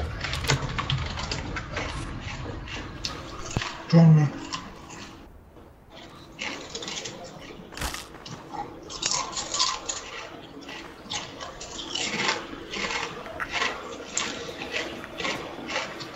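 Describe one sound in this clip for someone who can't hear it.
Footsteps tread steadily along the ground.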